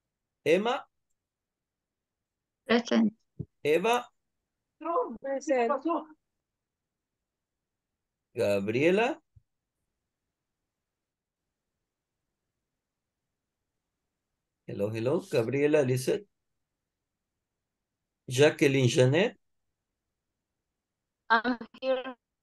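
A young woman speaks in short bursts over an online call, with silent pauses between them.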